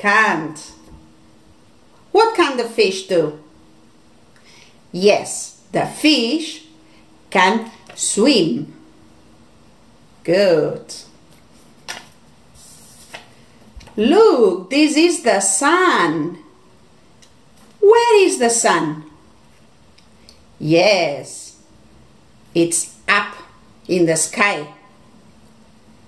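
A woman speaks clearly and slowly, close to a microphone, in short phrases with pauses.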